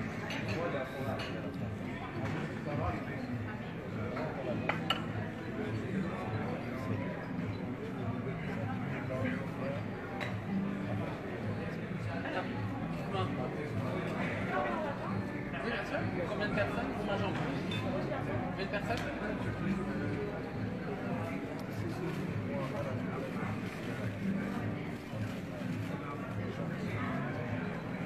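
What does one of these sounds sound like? A crowd of men and women talks all around, close and far.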